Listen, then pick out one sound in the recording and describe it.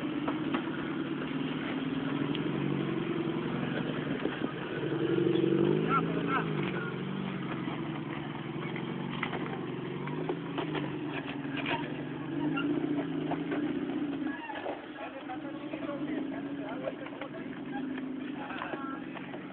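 Tyres crunch and scrape over rock and dirt.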